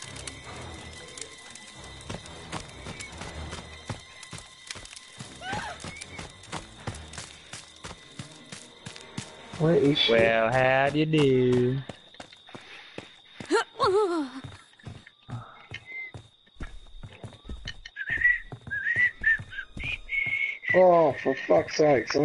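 Footsteps run over ground and wooden steps.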